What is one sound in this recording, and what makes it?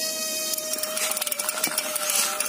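Small plastic wheels roll over rough concrete.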